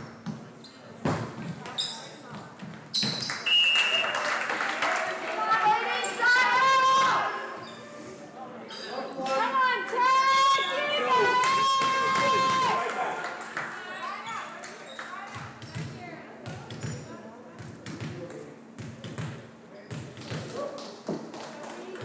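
Sneakers squeak on a hard floor.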